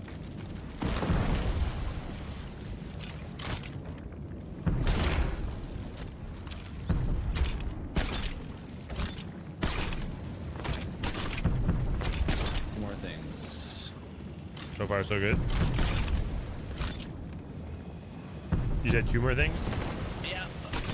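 Cannons boom with heavy blasts.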